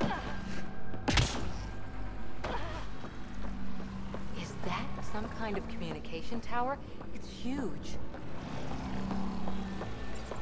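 Footsteps thud quickly on a hard metal floor.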